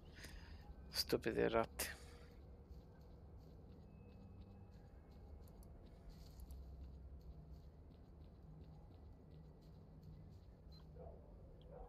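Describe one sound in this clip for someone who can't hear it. Footsteps tread through dry grass and over ground.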